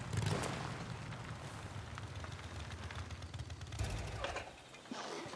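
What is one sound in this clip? A motorcycle engine idles with a low rumble, then cuts off.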